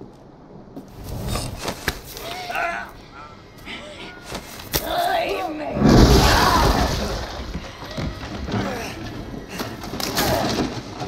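A young woman snarls and shouts angrily close by.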